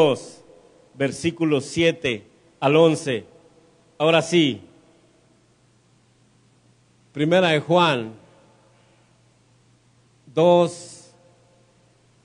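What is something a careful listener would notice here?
A man preaches with passion into a microphone in an echoing hall, in short bursts with pauses.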